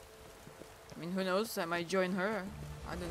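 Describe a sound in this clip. A woman speaks into a microphone in a lively, sing-song voice.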